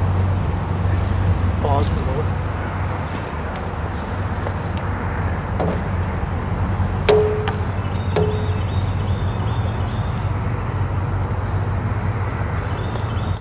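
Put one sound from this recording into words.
Wind rumbles steadily across an open outdoor space.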